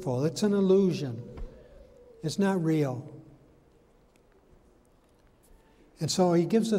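An elderly man speaks slowly and deliberately through a microphone, with pauses, in a room with a slight echo.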